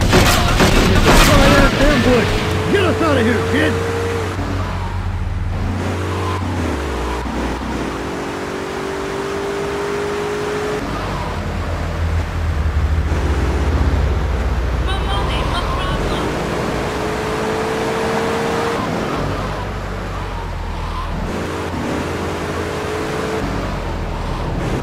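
A car engine revs and hums steadily as it drives.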